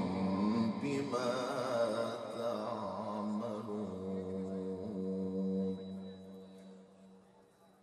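A man chants in a long, drawn-out melodic voice through a microphone and loudspeakers, then falls silent.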